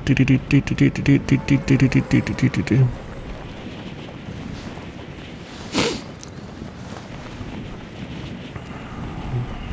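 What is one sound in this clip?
Wind rushes steadily past a skydiver falling through the air.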